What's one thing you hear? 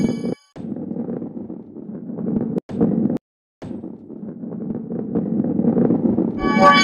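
A ball rolls along a wooden track with a low, steady rumble.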